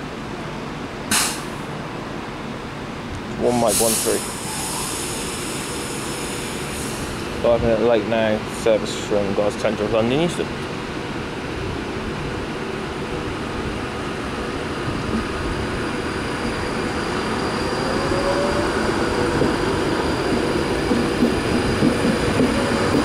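A passenger train rolls slowly past with a steady rumble that grows louder.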